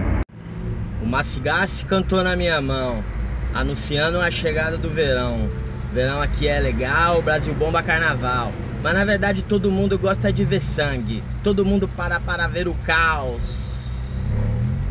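A man talks with animation close by inside a car.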